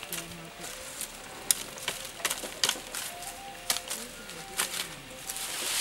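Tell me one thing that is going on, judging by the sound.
A knife chops into a thin branch with sharp knocks.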